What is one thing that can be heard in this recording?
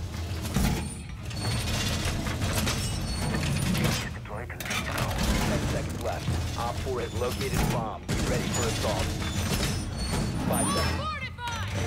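Heavy metal panels clank and thud into place against a wall.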